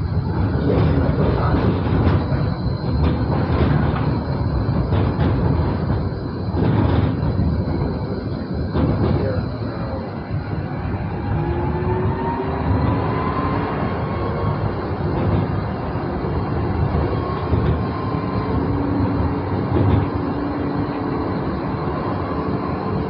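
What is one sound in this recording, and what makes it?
A tram rumbles steadily along its rails.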